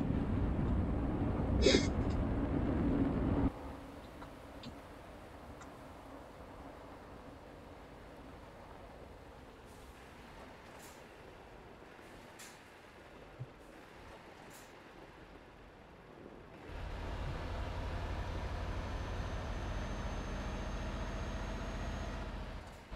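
A truck engine rumbles steadily, louder at times.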